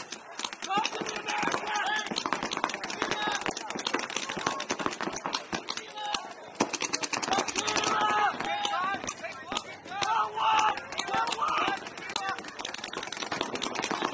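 Paintball markers fire in rapid bursts of sharp pops outdoors.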